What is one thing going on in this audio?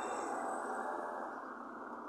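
A pickup truck drives along the street.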